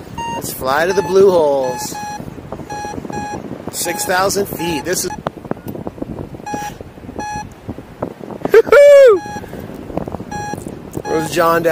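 A flight instrument beeps in short, evenly spaced tones.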